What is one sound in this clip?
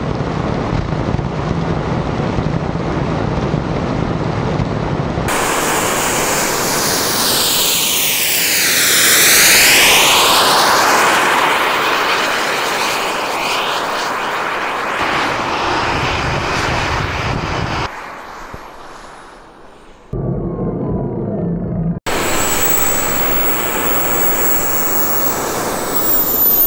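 Wind rushes loudly past a fast-moving rider.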